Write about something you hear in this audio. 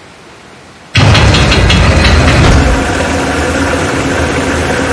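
A heavy machine rumbles and grinds.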